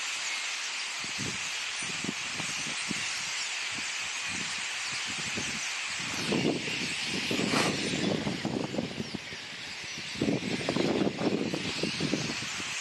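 Many wings flutter as birds take flight.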